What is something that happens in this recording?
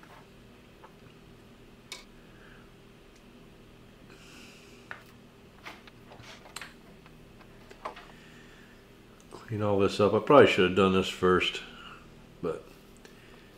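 Small metal parts click and tap as they are handled.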